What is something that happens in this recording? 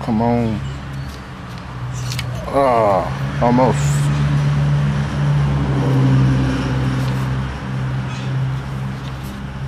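A plastic recoil starter pulley rattles and clicks as it is turned by hand.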